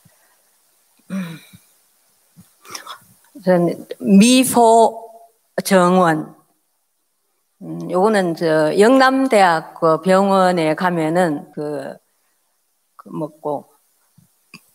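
An older woman speaks calmly into a microphone, her voice carried over loudspeakers in a large hall.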